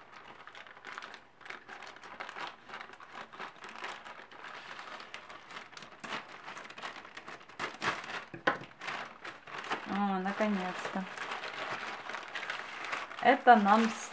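A plastic bag crinkles and rustles as hands handle it.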